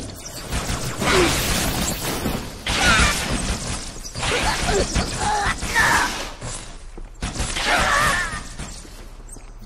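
Alien creatures shriek and roar.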